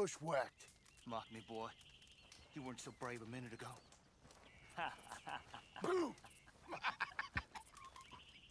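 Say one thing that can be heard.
A man answers in a rough, mocking voice.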